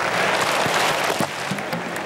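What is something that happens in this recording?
An athlete's footsteps pound quickly on a track.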